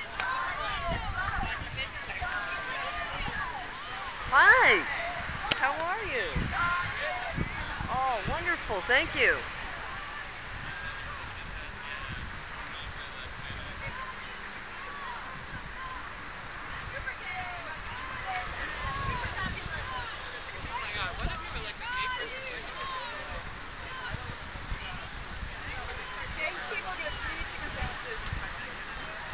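A crowd of men and women chatters and calls out nearby, outdoors.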